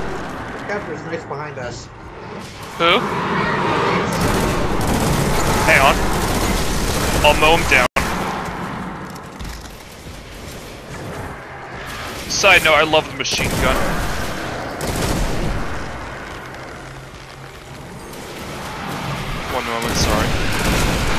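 Rapid gunfire rattles and booms in bursts.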